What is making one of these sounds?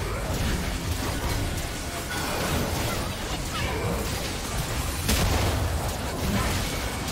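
Magic spells whoosh and crackle in a busy game battle.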